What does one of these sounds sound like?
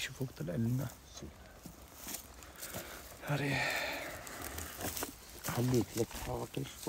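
Footsteps crunch over dry grass and stones.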